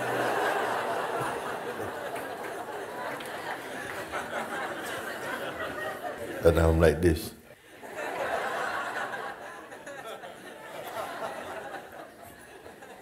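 An elderly man speaks calmly and warmly into a microphone.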